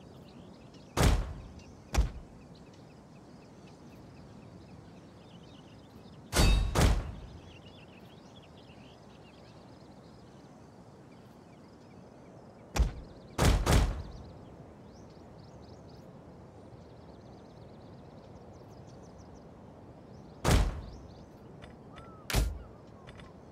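A game interface gives short sharp clicks.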